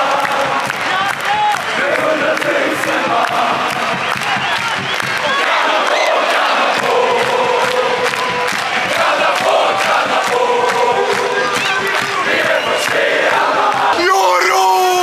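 A large crowd sings and chants loudly in a big echoing stadium.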